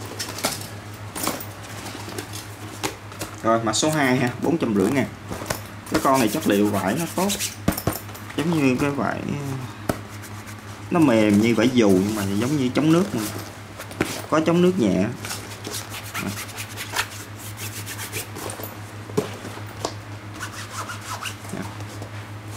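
Hands rustle and rub against a fabric bag.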